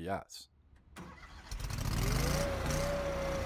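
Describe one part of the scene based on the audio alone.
An engine cranks, starts and revs up quickly.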